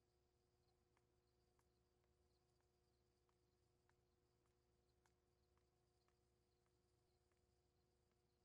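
Footsteps walk softly over a hard floor.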